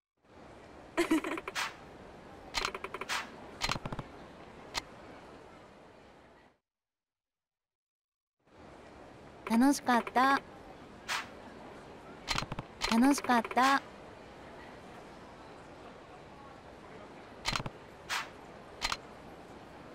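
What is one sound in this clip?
Short chirping blips play as lines of dialogue pop up.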